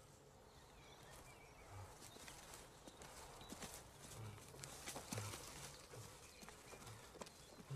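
Hands rustle and scrape through leaves and dry undergrowth.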